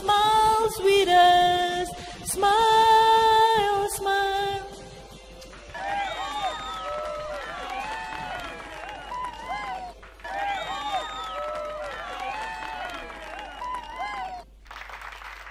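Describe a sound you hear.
A young woman sings into a microphone, heard through loudspeakers outdoors.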